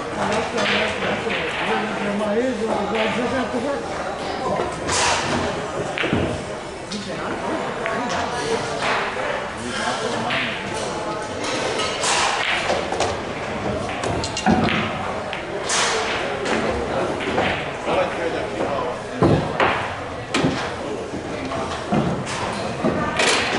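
Pool balls click sharply against each other on a table.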